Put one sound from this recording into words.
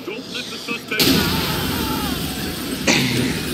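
A car explodes with a loud roar.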